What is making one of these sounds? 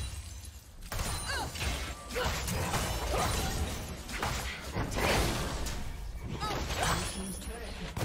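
Game spell effects and combat sounds clash and burst rapidly.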